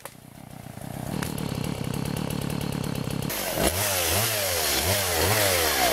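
A chainsaw engine runs nearby.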